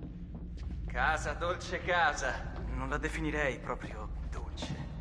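A second young man answers with animation.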